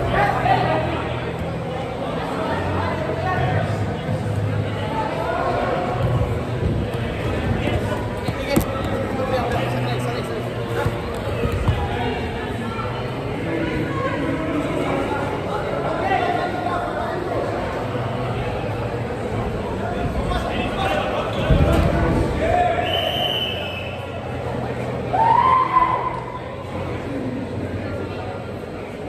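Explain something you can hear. Young players shout and call out to each other across a large echoing indoor hall.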